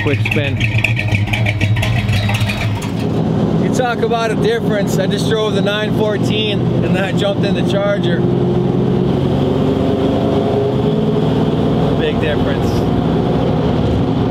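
A car engine rumbles loudly and steadily.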